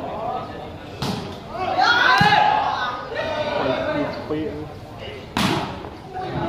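A ball is struck with a sharp thud.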